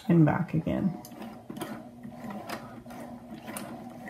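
A sewing machine runs with a steady, low whirr.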